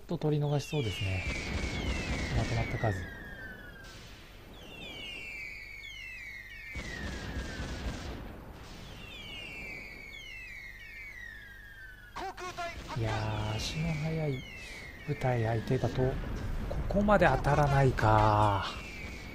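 Shells whistle downward through the air.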